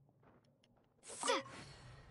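A magical water slash whooshes loudly.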